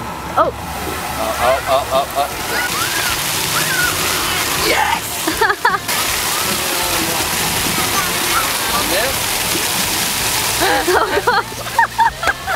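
Fountain jets spray and splash water steadily outdoors.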